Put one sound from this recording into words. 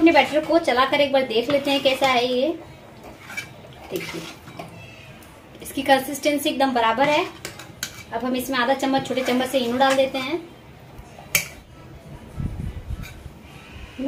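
A spoon stirs thick batter in a bowl.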